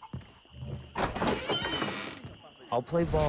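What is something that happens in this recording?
A wooden door is pushed open.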